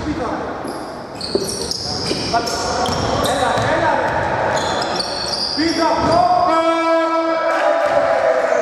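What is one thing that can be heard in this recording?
Sneakers squeak sharply on a wooden court in an echoing hall.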